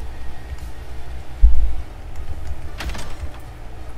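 A heavy wooden door opens with a thud.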